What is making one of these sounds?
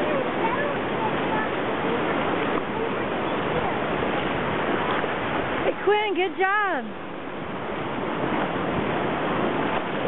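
Small waves lap and wash along the shore.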